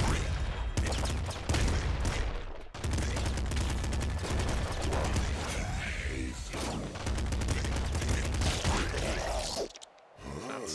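Rapid gunfire and explosions from a video game crackle and boom.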